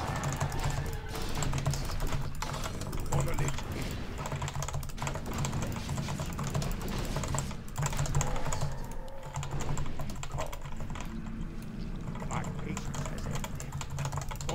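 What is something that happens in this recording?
Swords clash and spells crackle in a video game battle.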